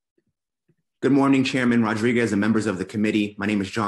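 A second man speaks over an online call.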